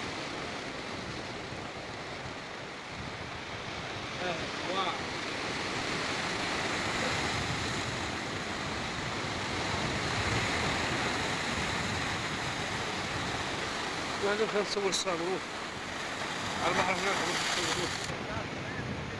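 Waves crash and surge against rocks, outdoors in the open air.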